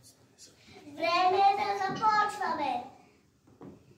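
Young children recite together in loud, lively voices.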